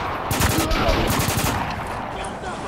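A machine gun fires rapid bursts close by.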